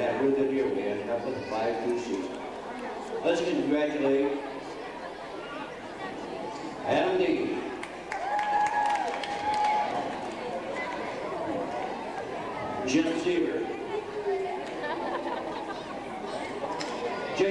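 A group of boys chatter and call out in a large echoing hall.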